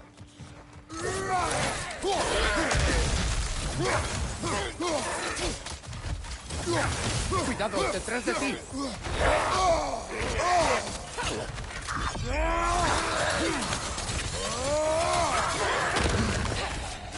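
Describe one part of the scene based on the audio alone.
Heavy weapon blows thud and clang.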